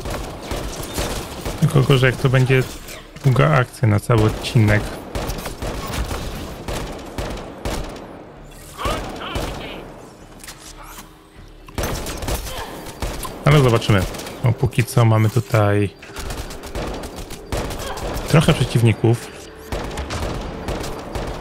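Gunshots crack repeatedly.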